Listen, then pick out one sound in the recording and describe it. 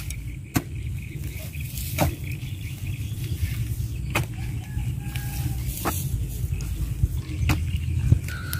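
A spade chops into wet soil with dull thuds.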